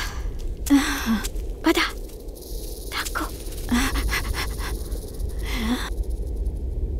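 An elderly man speaks slowly in a deep voice, close by.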